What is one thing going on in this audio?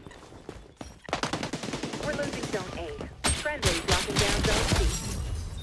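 Gunfire from a video game rattles in quick bursts.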